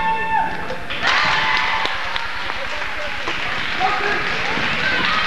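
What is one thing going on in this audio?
A crowd cheers loudly in an echoing hall.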